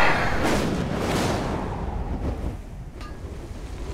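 A magical spell whooshes and shimmers.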